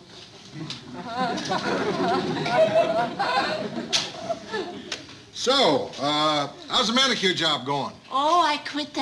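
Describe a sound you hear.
A middle-aged man speaks gruffly nearby.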